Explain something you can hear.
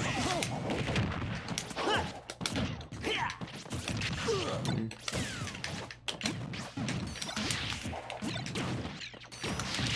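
Game fighters clash with sharp hits and whooshes.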